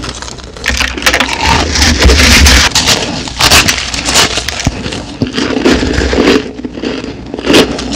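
Fingers scrunch and pinch a heap of shaved ice.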